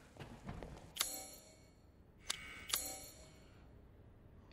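Short game menu clicks and whooshes sound.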